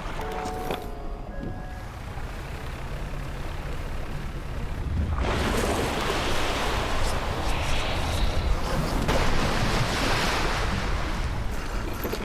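A boat engine rumbles low and steady.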